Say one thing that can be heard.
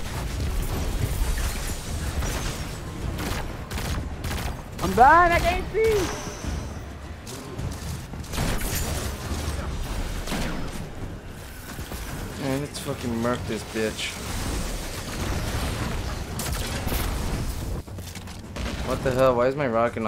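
Gunfire from a game rattles in rapid bursts.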